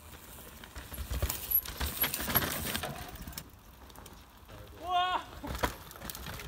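Bicycle tyres skid and crunch over loose dirt.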